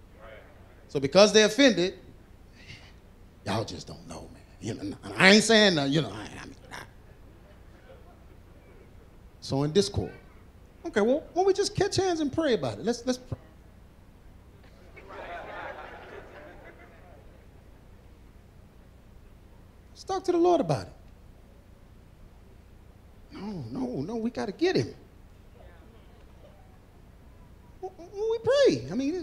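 A man speaks with emphasis through a microphone in a large room, pausing between phrases.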